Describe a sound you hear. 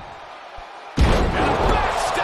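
A heavy body slams down onto a wrestling mat with a loud thud.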